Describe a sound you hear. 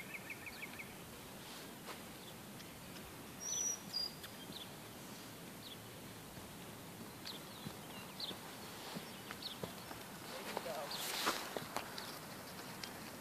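A horse trots with soft rhythmic hoof thuds on sand, growing closer.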